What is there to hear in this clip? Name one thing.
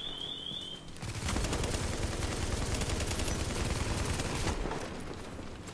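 Rapid gunfire rattles close by.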